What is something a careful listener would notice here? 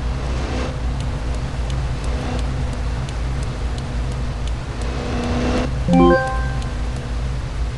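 A turn signal ticks in quick, even clicks.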